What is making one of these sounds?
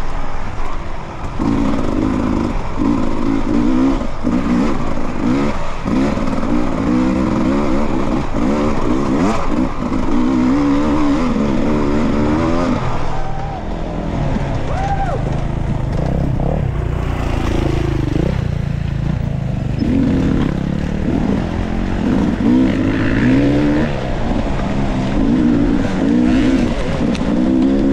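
Knobby tyres crunch over dirt and dry leaves.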